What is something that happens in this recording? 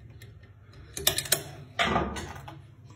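A door lock mechanism clicks as its bolt moves.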